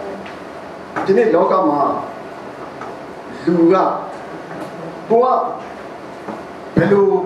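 A man speaks calmly into a microphone, heard through a loudspeaker with a slight room echo.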